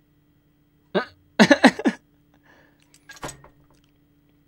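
A young man laughs loudly, close to a microphone.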